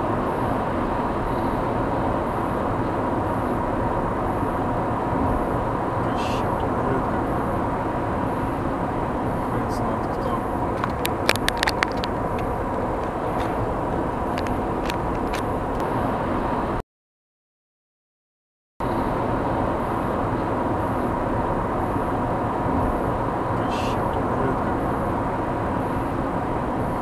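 Tyres roar steadily on a road as a car drives along.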